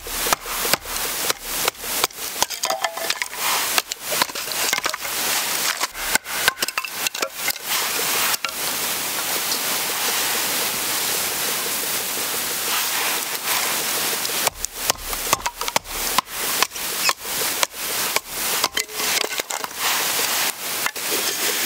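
A knife blade knocks and splits dry kindling wood.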